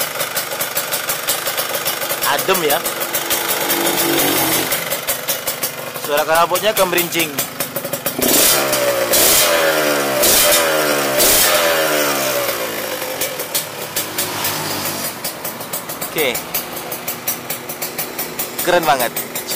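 A two-stroke motorcycle engine idles with a rapid popping rattle.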